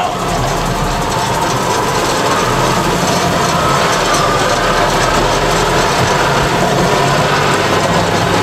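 A seed spreader whirs as it scatters seed.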